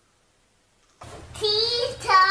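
A toddler squeals and shrieks loudly with excitement.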